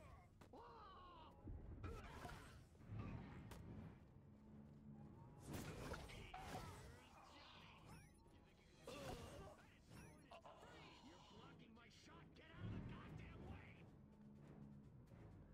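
Gunfire zaps in quick bursts.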